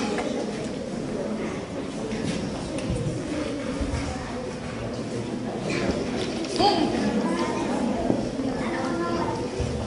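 A middle-aged woman reads out calmly through a microphone in an echoing hall.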